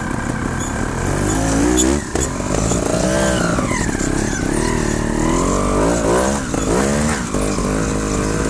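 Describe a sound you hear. A motorbike engine revs up and down loudly close by.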